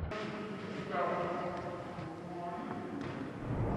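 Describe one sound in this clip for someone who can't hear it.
A group of men sing loudly together.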